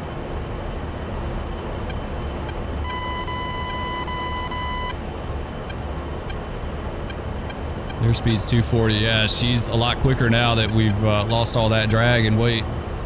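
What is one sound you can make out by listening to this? A jet engine roars steadily in the cockpit.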